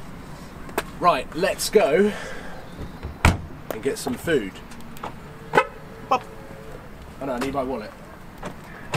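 A young man talks casually nearby, outdoors.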